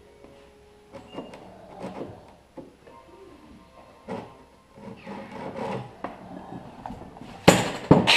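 Tools tap and scrape on wood.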